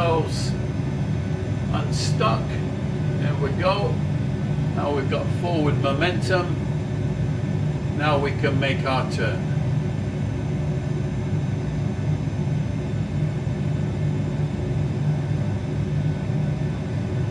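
Jet engines hum low and steady as an airliner taxis.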